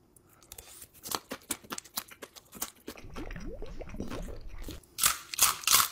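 A person slurps noodles close up.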